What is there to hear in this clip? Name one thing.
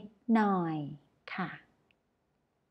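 A woman speaks clearly and slowly into a close microphone.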